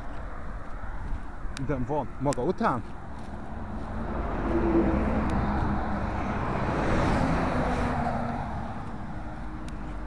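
Traffic hums steadily on a road outdoors.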